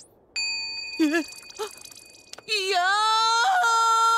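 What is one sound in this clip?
A young woman shrieks and wails in dismay.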